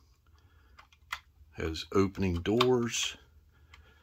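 A small toy car door clicks open.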